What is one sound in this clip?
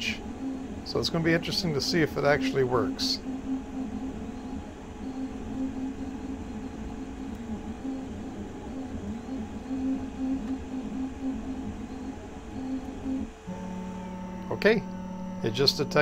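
A 3D printer's motors whir and whine in shifting tones as the print head moves.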